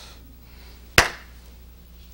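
A man claps his hands once.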